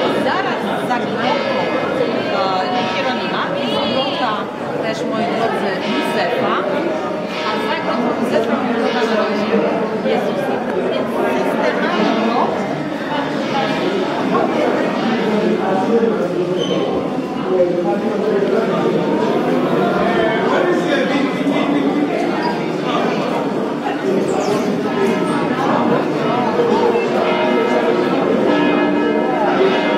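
A crowd of men and women chatter all around in a large echoing space.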